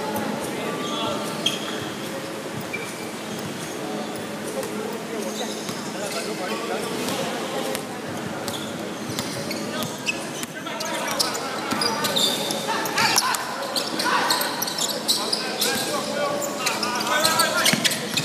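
Several young men shout and call out during play in an echoing hall.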